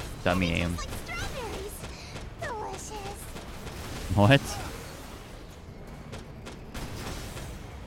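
Explosions boom in short bursts.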